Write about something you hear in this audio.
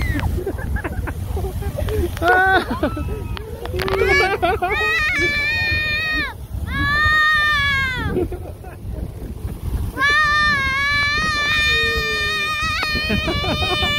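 A geyser roars and hisses steadily as it sprays water.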